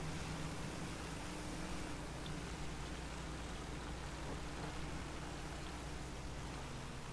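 A vehicle engine rumbles steadily as it drives over rough ground.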